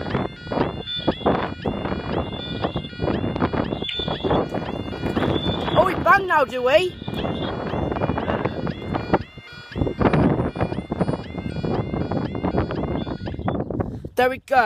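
A level crossing alarm beeps rapidly and steadily.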